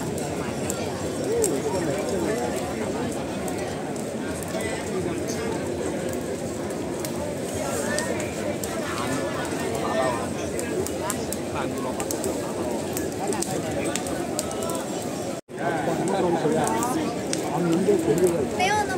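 A large bonfire crackles and roars.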